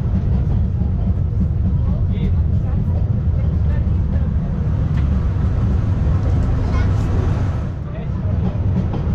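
A train rumbles and clatters steadily along its track.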